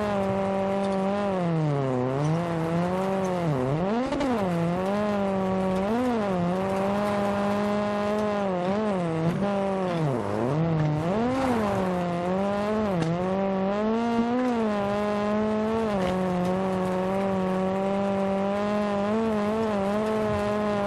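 A rally car engine roars and revs up and down through gear changes.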